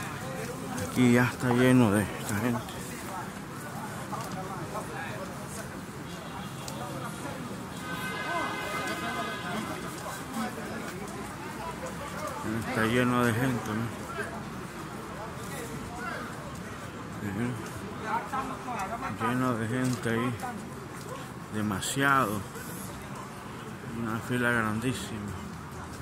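Men shout loudly nearby, now and then.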